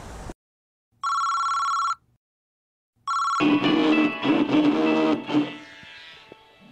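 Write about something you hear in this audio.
A mobile phone rings with an electronic tone.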